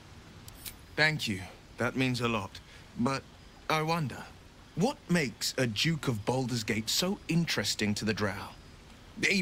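A man speaks calmly and clearly, close up.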